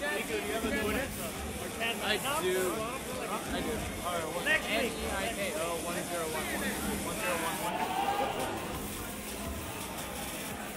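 A crowd of young men chatters nearby.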